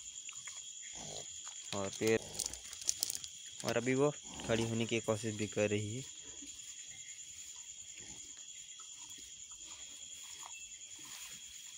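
A cow licks a newborn calf with wet, soft sounds.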